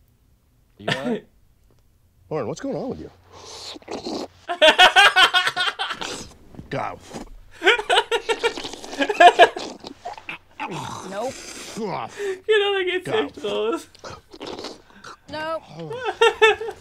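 A young man and a young woman talk and laugh close to a microphone.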